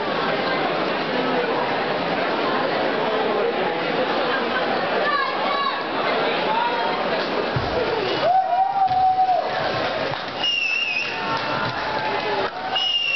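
A large crowd chatters and murmurs in a big echoing hall.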